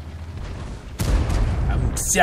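A tank cannon fires with a deep blast.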